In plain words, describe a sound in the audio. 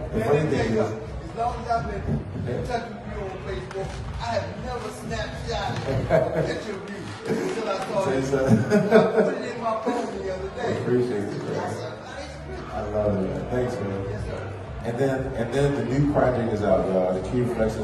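Several adults talk and chatter at once in an echoing room.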